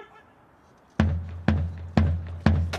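A military band's drums start to beat loudly.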